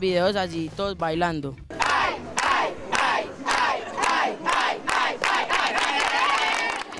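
A group of young boys chants and cheers loudly together outdoors.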